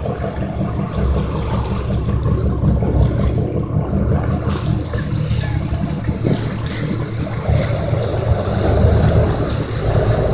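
Choppy sea water splashes and washes nearby.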